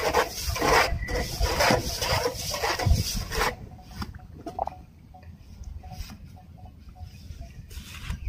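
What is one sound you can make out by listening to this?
A metal bar thuds as it stirs and tamps cement in a hole.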